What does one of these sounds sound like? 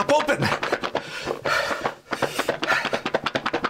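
A middle-aged man laughs loudly close by.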